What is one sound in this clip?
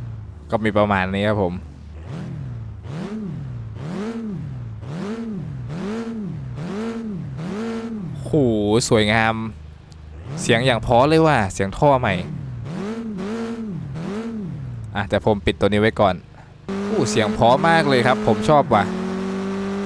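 A car engine revs up and down repeatedly.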